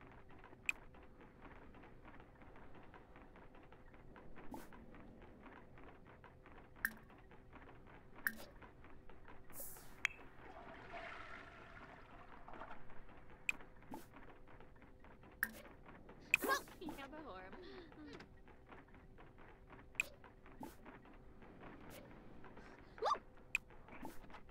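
Short soft clicks sound now and then as menu options are picked.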